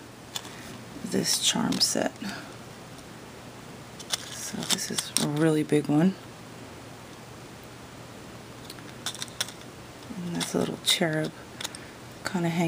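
Metal charms clink softly as a card is handled.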